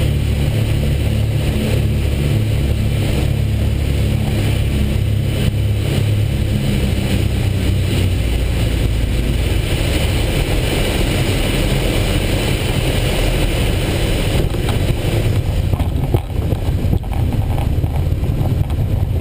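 A small propeller plane's engine roars loudly and steadily from inside the cockpit.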